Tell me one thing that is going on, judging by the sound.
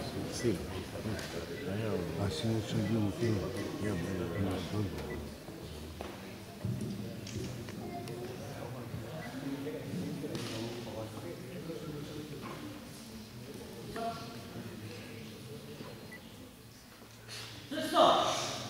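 Several men and women chat in an echoing sports hall.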